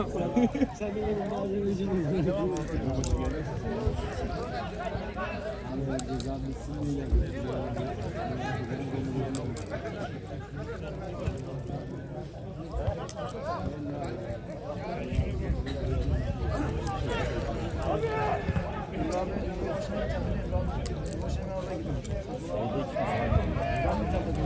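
Men in a small crowd of spectators chatter nearby.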